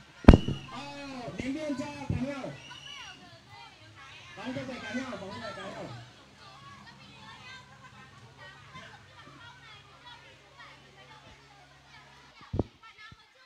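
Children shout and call out to each other outdoors.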